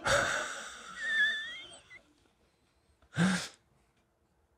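A man laughs softly close to a microphone.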